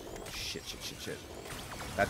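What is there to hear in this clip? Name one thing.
A gun fires rapid energy shots.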